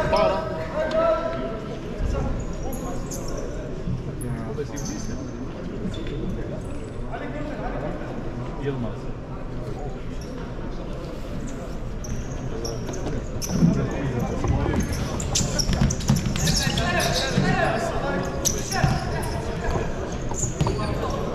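A crowd of spectators murmurs and chats in a large echoing hall.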